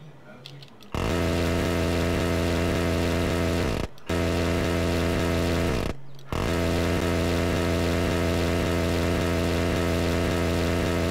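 A jet engine drones loudly and steadily.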